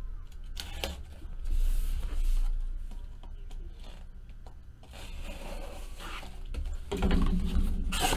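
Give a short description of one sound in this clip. Cardboard flaps scrape and rustle as a box is opened.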